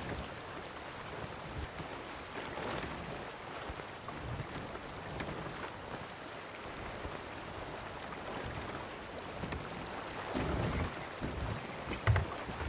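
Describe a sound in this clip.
A ship's wooden wheel creaks as it turns.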